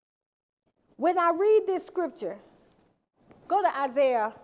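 A woman speaks clearly and with expression through a microphone.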